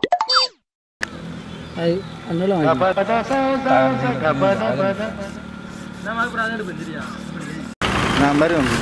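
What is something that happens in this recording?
Young men talk with each other outdoors.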